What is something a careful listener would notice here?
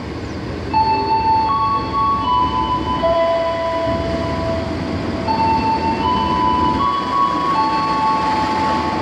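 A diesel locomotive engine rumbles as it approaches.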